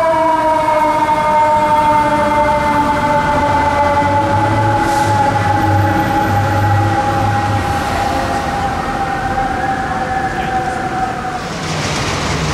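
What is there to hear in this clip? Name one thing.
Traffic rolls along a busy street.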